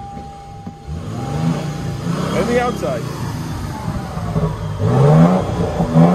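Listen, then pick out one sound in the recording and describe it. A car engine rumbles and revs loudly through its exhaust.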